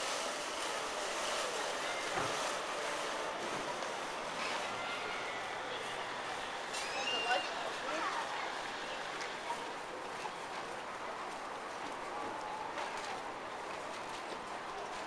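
A crowd murmurs in a large echoing space.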